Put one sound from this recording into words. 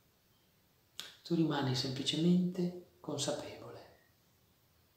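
A middle-aged man speaks calmly and close to the microphone.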